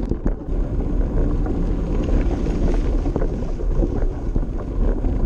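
Wind buffets loudly against a microphone outdoors.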